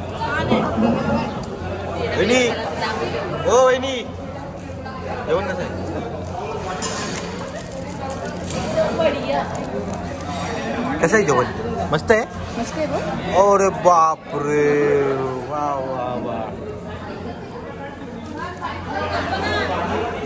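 Many people chatter loudly in an echoing hall.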